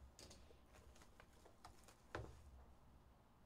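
A cardboard box knocks and scrapes as it is set down on a table.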